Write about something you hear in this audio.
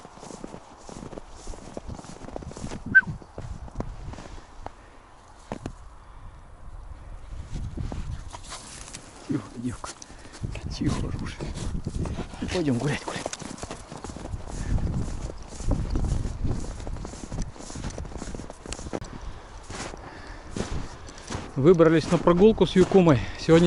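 Wind rumbles across the microphone outdoors.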